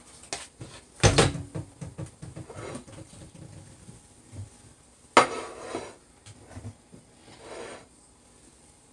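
A plate clatters and scrapes on a countertop.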